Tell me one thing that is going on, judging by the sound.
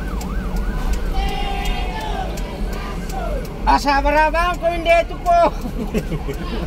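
Young men riding on a truck shout and whoop loudly.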